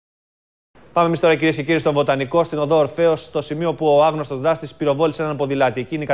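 A man speaks calmly and clearly into a microphone, reading out the news.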